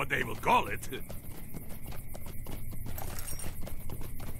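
Footsteps patter quickly over rocky ground.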